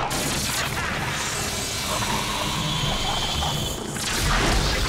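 An arrow whooshes through the air with a shimmering magical hiss.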